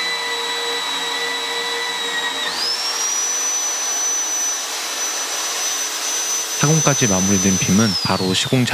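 A drill whines steadily as it bores through steel.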